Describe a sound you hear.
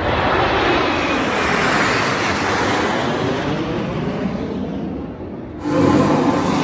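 Jet aircraft roar loudly overhead, the noise slowly fading.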